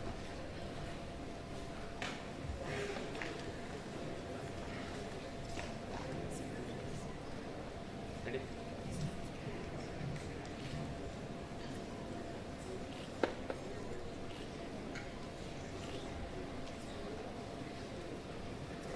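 A crowd murmurs softly in a large echoing hall.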